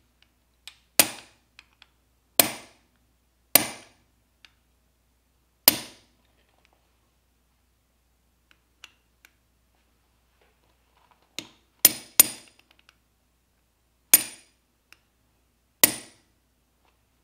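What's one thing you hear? A hammer strikes a steel punch against metal in sharp, ringing taps.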